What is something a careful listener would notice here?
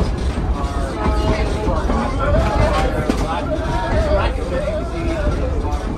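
A streetcar rumbles and rattles along its tracks.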